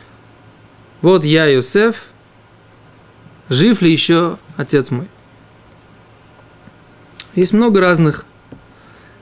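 A man speaks calmly into a microphone in short phrases with pauses.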